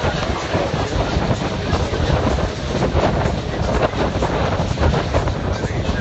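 Waves rush and splash against a moving boat's hull.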